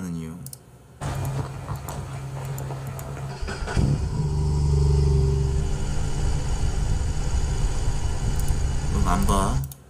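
A motorcycle engine rumbles and revs.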